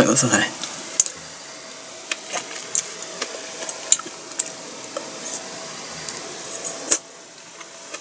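A woman licks and sucks on a lollipop with wet smacking sounds.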